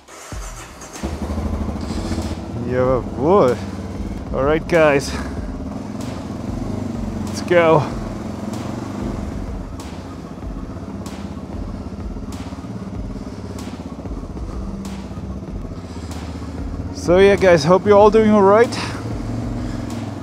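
A motorcycle engine runs steadily, echoing in a large enclosed space.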